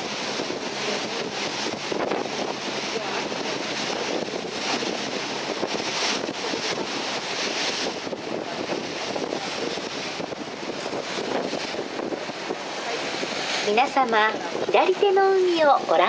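Sea water rushes and splashes against a moving boat's hull.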